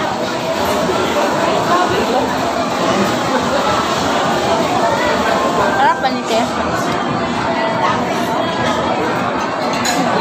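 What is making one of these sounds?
A crowd of people chatters all around in a busy, echoing room.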